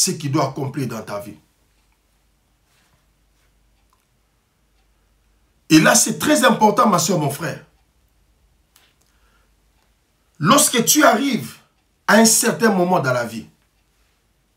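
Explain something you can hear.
A man speaks slowly and earnestly into a close microphone, with long pauses.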